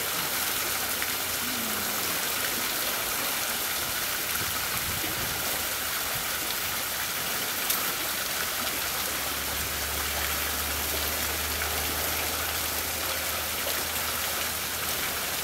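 A fountain of water splashes and gushes steadily onto a rock.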